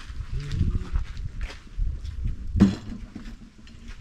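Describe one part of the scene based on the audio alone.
Water splashes onto the ground from a thrown bucket.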